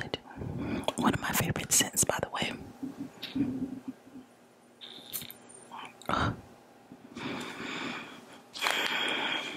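A young woman whispers softly close to a microphone.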